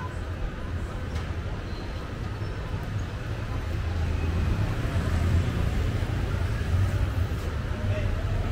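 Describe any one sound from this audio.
Street traffic rumbles steadily nearby, outdoors.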